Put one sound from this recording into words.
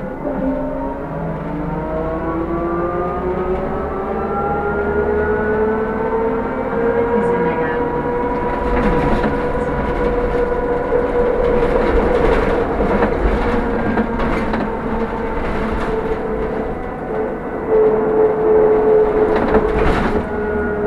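A bus engine whines, rising in pitch as the bus speeds up.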